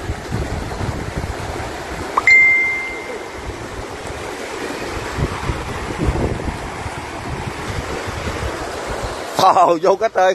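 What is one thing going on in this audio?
Muddy river water rushes past nearby.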